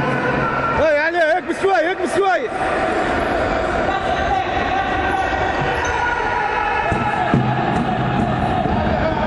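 Sneakers squeak on a wooden court in an echoing hall.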